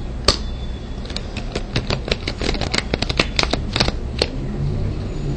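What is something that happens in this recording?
Paper banknotes flick and riffle rapidly under a thumb.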